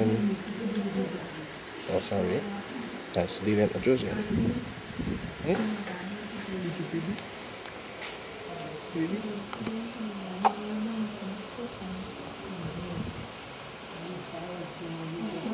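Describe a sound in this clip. A newborn baby grunts and fusses softly close by.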